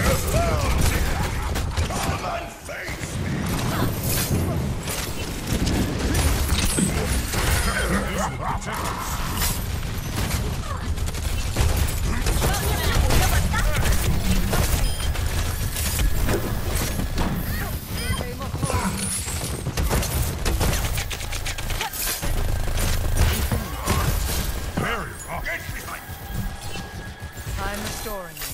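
Heavy guns fire in rapid, rattling bursts.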